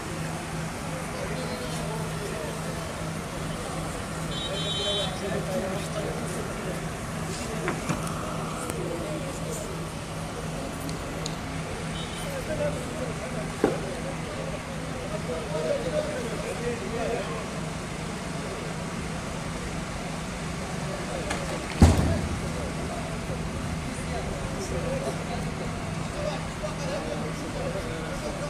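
Men talk outdoors nearby.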